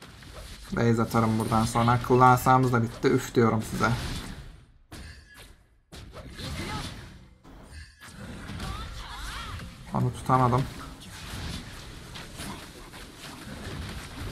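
Weapons clash and magic blasts crackle in a fast fight.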